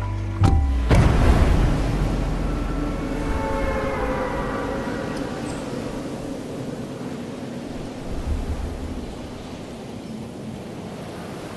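Wind rushes steadily past during a long fall.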